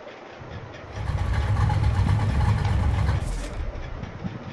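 A powerful car engine rumbles loudly, then fades.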